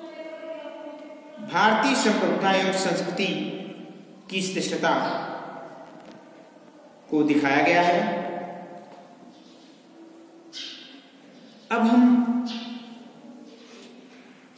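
A man speaks with animation in a small echoing room.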